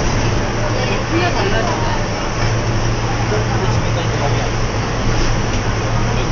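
A train rumbles steadily along an elevated track, heard from inside the cab.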